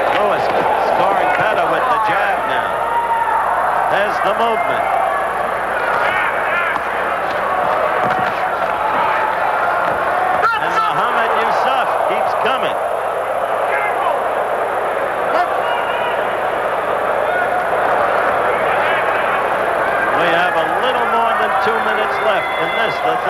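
A large crowd cheers and murmurs in a big echoing hall.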